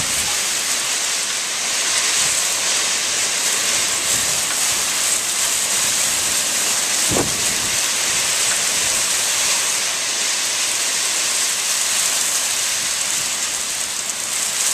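Strong wind roars through a tree's branches.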